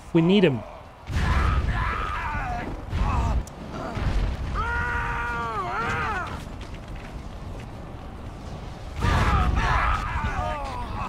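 Fire and blasts roar in a battle.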